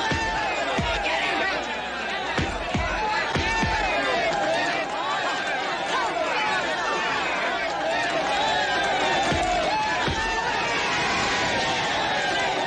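A crowd of men and women cheers and shouts loudly outdoors.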